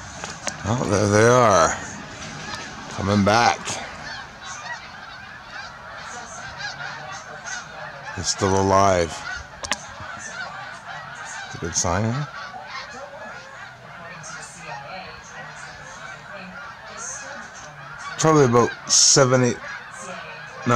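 A large flock of birds calls overhead, with loud rolling cries now and then over a steady distant chatter.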